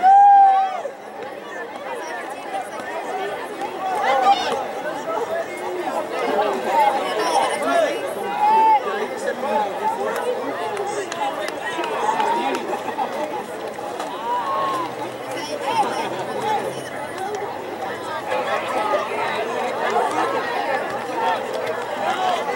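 Players shout to each other across an open field.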